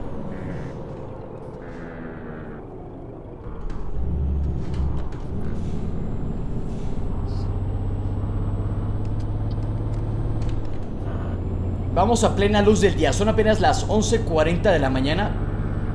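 A bus engine hums steadily and grows louder as it pulls along.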